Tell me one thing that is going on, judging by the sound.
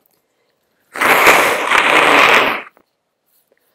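A young girl lets out a loud, breathy sigh into a microphone.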